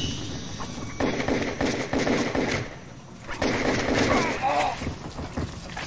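Pistol shots crack in rapid bursts.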